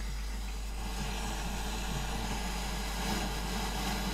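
A plastic knob clicks as it is turned.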